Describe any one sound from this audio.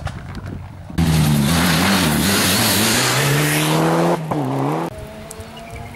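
Tyres skid and spray gravel on the road.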